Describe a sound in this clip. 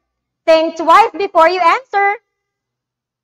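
A young woman speaks clearly and with animation into a close microphone.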